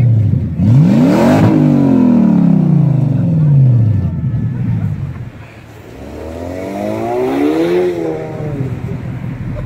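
A car engine revs up hard and drops back, twice.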